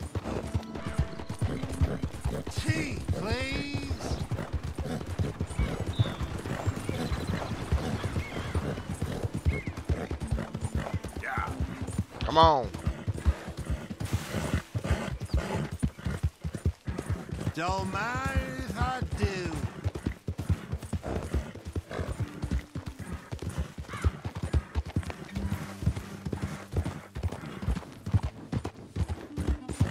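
Horse hooves pound steadily at a gallop.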